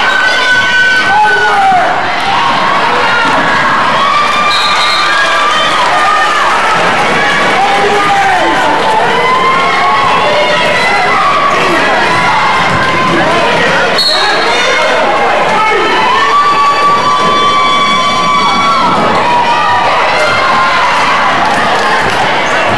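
A crowd of spectators murmurs and cheers in a large echoing gym.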